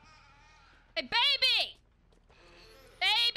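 A young woman screams loudly in fright.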